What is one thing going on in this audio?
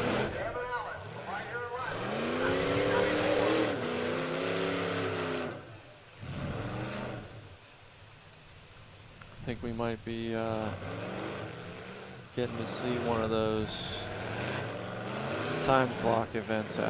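Car engines rev hard and roar up and down.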